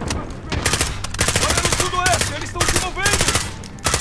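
A rifle magazine is reloaded with metallic clicks.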